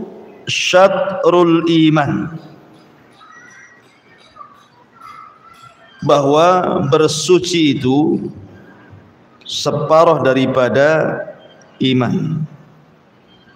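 A man chants in a drawn-out melodic voice close to a microphone, with pauses between phrases.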